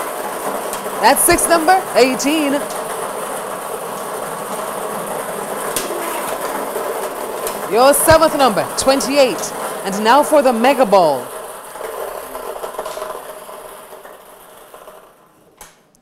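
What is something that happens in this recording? Lottery balls rattle and tumble in a drawing machine.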